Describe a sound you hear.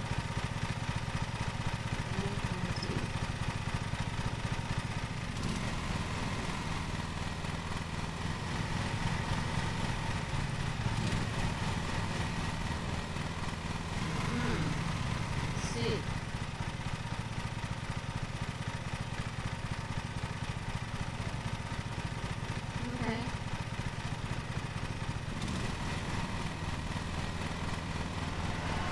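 A lawn mower engine drones steadily.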